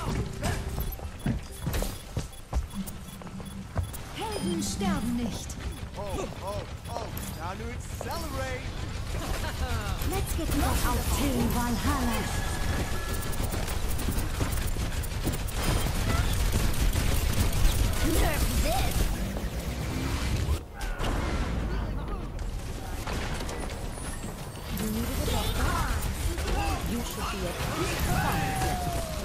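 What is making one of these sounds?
Energy weapons fire in quick bursts with buzzing zaps.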